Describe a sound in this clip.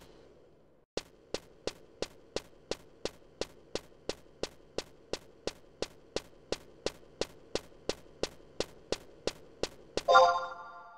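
Footsteps patter quickly and evenly on a hard floor.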